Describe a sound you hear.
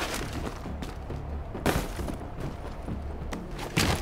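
A body lands heavily after a drop.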